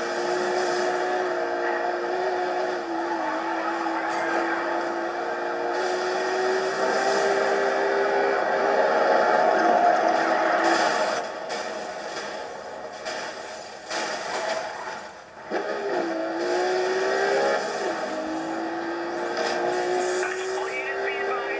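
A racing car engine roars steadily through a television speaker.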